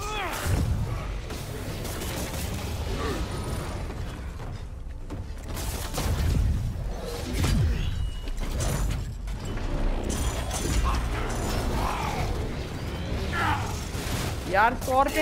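Heavy punches and blows thud during a fight.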